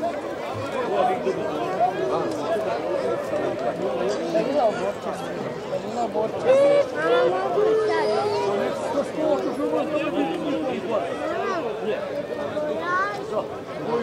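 Men shout excitedly close by.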